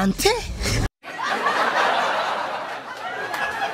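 Young men and a young woman laugh together.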